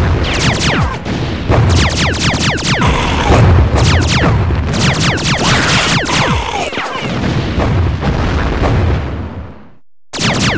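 Explosions boom with deep rumbles.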